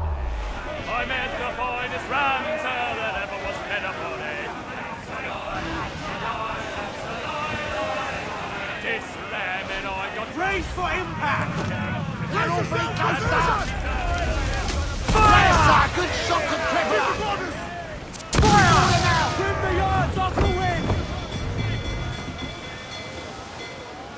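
Waves splash against a sailing ship's hull.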